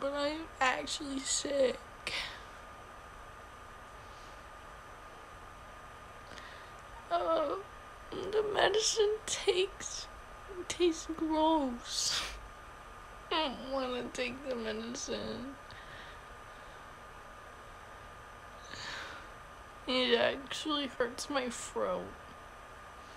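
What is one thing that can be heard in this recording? A young woman talks in short bursts, close to a phone microphone.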